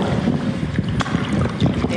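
A paddle splashes through water.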